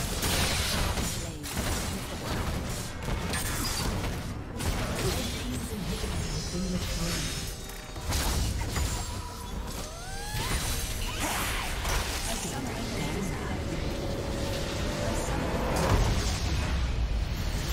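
Game spell effects crash, whoosh and explode during a fight.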